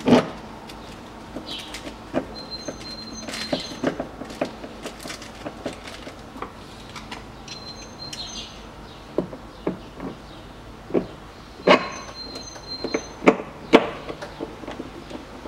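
Hands knock and rattle against a car door panel.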